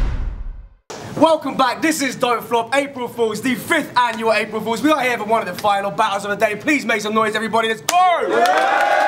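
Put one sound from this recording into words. A man raps forcefully to a crowd.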